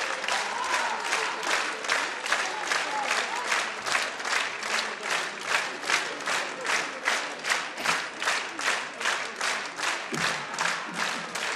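A crowd claps in a steady, rhythmic beat, echoing in a large hall.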